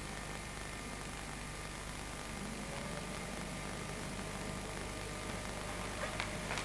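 Bodies slide and shuffle across a wooden floor.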